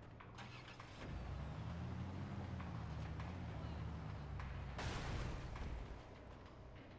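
A vehicle engine rumbles and revs as it drives over rough ground.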